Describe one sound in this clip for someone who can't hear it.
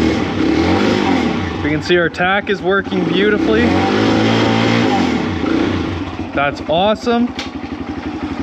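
A motorcycle engine idles with a steady rumble.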